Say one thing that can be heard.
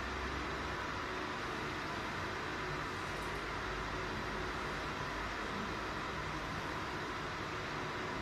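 A heat recovery ventilator's fan whirs with a steady rush of air.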